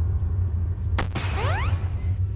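A game bomb explodes with a sharp, short blast.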